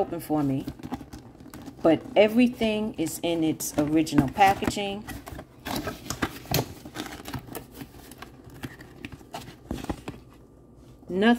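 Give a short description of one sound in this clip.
Cardboard flaps scrape and thump as a box is opened.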